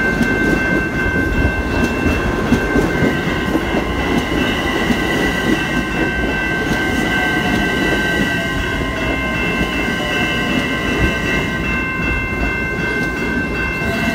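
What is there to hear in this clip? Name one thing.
Train wheels screech with steady high squeals.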